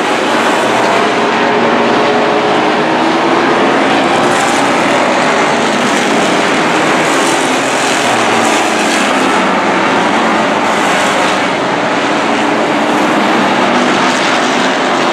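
Race car engines roar loudly as the cars speed around a track.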